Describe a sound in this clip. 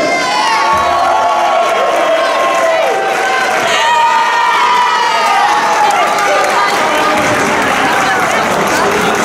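A group of young women cheers and chants loudly nearby.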